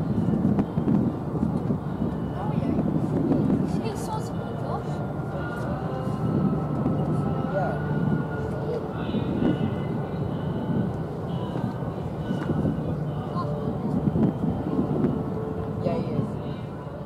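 A large ship's engines rumble low and steadily across the water.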